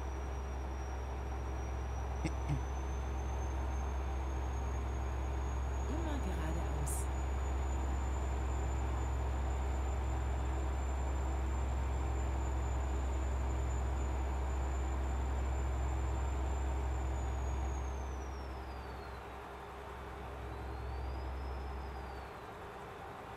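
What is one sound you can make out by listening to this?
A truck engine drones steadily, then winds down.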